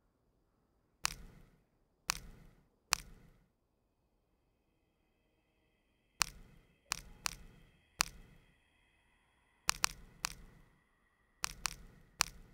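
Short menu clicks sound as a cursor moves between entries.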